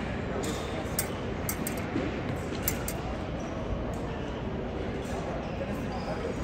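Fencing blades clink and tap in a large echoing hall.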